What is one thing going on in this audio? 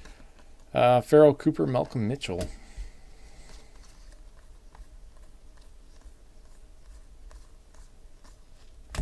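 Trading cards rustle and flick softly as hands shuffle through a stack.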